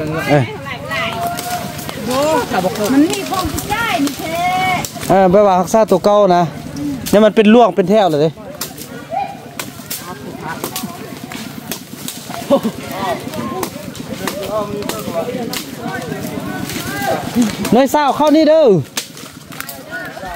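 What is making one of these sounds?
Leaves and twigs rustle and snap as someone moves through undergrowth.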